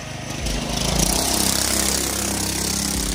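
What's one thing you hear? A dirt bike engine drones as the bike rides past over grass.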